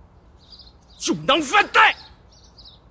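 A second man answers sharply nearby.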